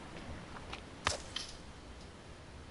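Palm leaves rustle as they are grabbed.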